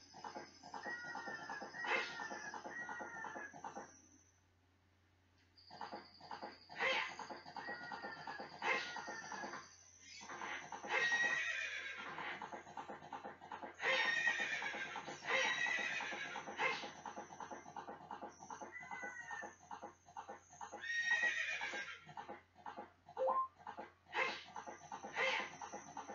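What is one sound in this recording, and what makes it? A horse's hooves gallop quickly and steadily.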